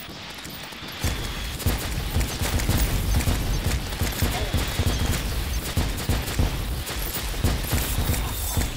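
Loud explosions rumble and boom.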